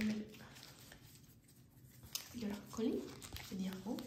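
Playing cards riffle and flutter as a deck is shuffled close by.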